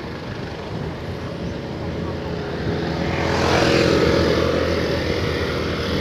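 Another motorcycle passes close by and fades.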